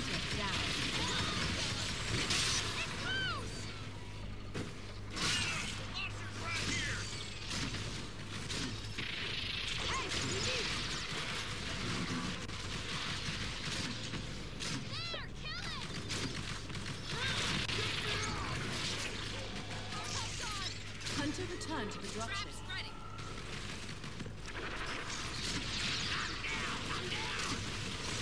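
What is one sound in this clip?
An energy gun fires in rapid crackling bursts.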